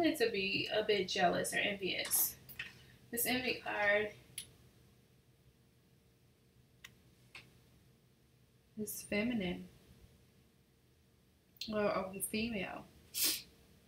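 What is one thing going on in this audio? A woman speaks calmly and close to a microphone, in short bursts with pauses.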